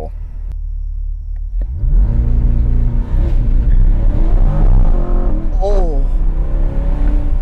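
A sports car engine idles low, then revs up into a loud roar.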